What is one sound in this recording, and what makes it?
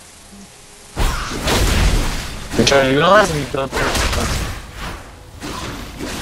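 Electronic fighting effects of blows and spells crash and whoosh in quick bursts.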